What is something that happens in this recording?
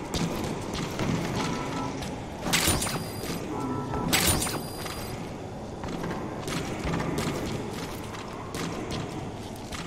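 Footsteps walk steadily across a hard floor.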